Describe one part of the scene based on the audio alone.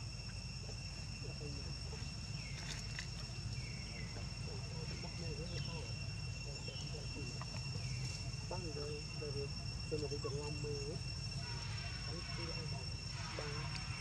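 Baby monkeys squeak and chatter softly close by.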